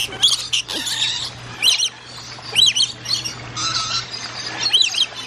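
A flock of parrots chatters and chirps all around.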